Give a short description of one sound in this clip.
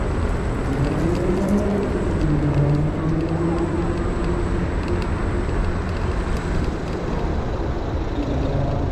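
A vehicle engine hums nearby in traffic.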